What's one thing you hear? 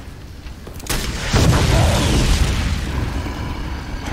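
Fire roars and an explosion booms.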